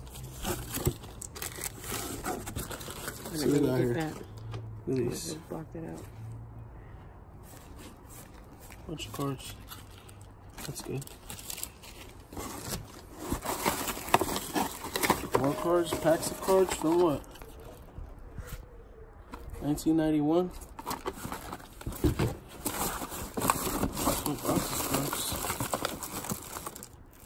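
Plastic wrappers crinkle and rustle as packs are handled.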